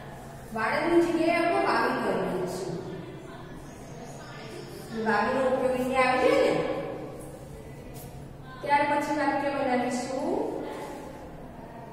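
A woman speaks clearly and slowly, as if teaching.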